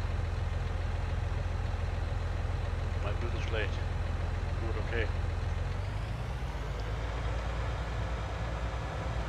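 A tractor engine rumbles steadily, then changes pitch as it drives off.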